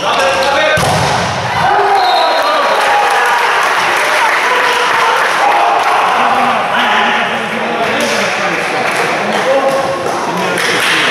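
A crowd of young men shout and cheer in a large echoing hall.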